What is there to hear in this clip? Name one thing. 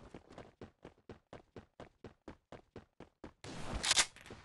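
Footsteps tap quickly and evenly.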